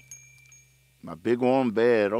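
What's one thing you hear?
A man sings loudly, close to a microphone.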